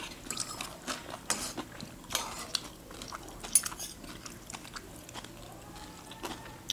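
A man and a woman chew and slurp food close to a microphone.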